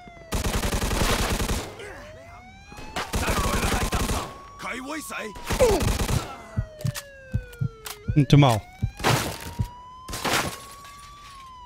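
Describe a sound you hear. Rapid bursts of automatic gunfire ring out.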